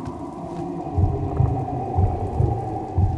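Footsteps thud slowly on wooden boards.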